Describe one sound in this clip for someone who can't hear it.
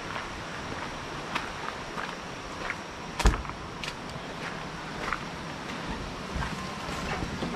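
Footsteps crunch on wet gravel.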